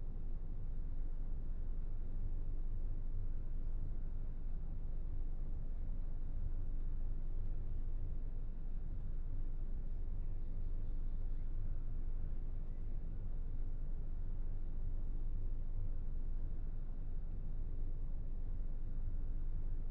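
A train's motor hums low and steady while the train stands still.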